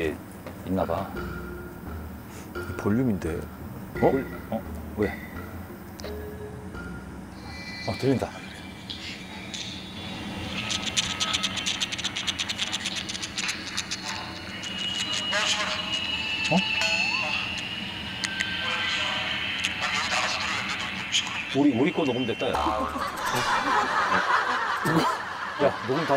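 A man speaks quietly and with puzzlement, close by.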